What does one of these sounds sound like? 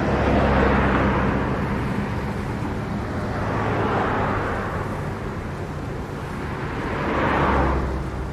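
Traffic rushes steadily along a busy highway, with cars swelling past.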